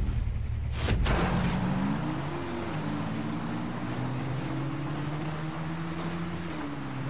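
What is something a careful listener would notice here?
A quad bike engine revs and pulls away.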